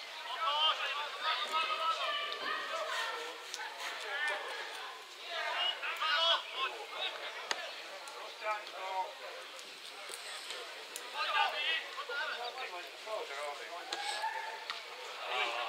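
A spectator close by talks calmly.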